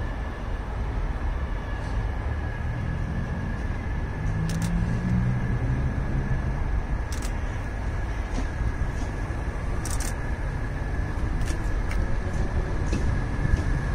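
A train approaches along the tracks, rumbling louder as it nears.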